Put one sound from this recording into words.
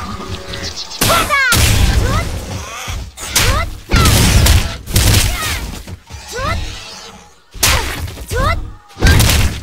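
Bursts of battle effects whoosh and crash.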